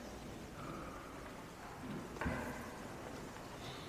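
A man speaks briefly into a microphone in a large echoing hall.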